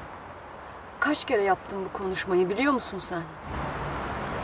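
A young woman speaks in an upset, tearful voice close by.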